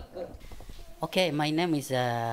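A man answers calmly into a microphone.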